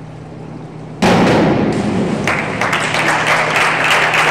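A diver splashes into a pool in a large echoing hall.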